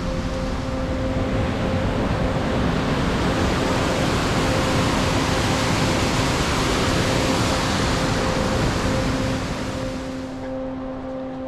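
A mountain stream rushes loudly over rocks.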